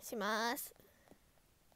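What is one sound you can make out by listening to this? A young girl lets out a short, rising squeal close to the microphone.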